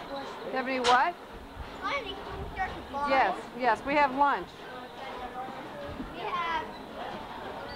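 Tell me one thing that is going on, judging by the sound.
A child speaks excitedly close by.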